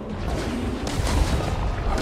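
Bolts whoosh through the air.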